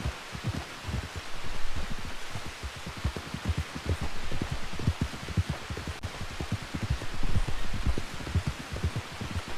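Rain falls with a steady hiss.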